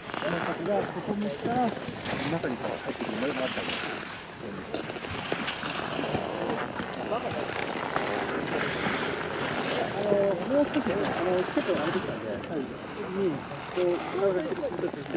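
Skis carve across groomed snow with a scraping hiss.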